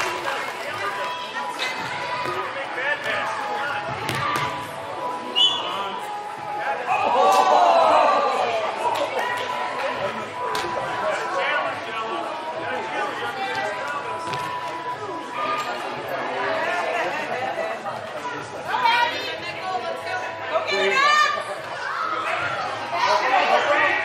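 Young women shout and call out across an echoing indoor hall.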